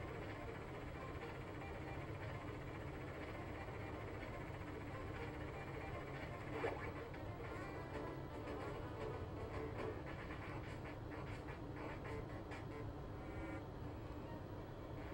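Chiptune video game music plays steadily.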